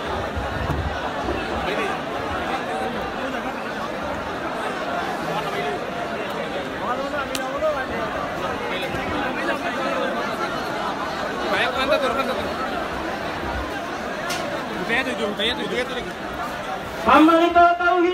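A crowd chatters and murmurs close by.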